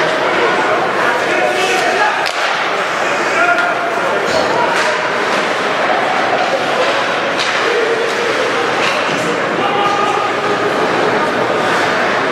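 A crowd of spectators murmurs and calls out in a large echoing arena.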